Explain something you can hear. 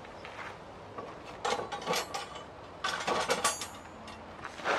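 Steel rods clank against each other.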